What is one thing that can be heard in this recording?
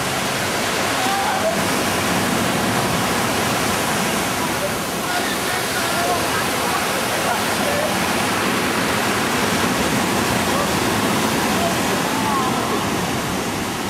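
Young men shout and call out faintly over the surf.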